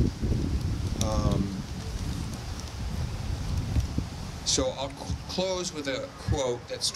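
A man speaks into a microphone outdoors.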